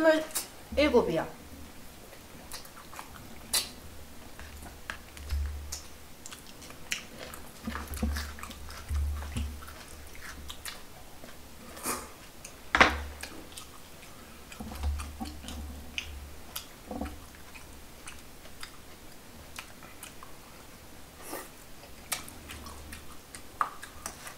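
Food crunches and squelches as a man chews loudly.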